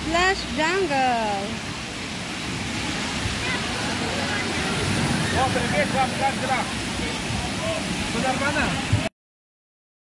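Children shout and shriek playfully nearby.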